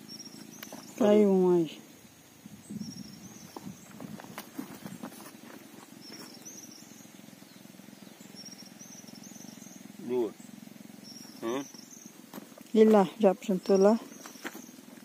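A man speaks in short bursts nearby, outdoors.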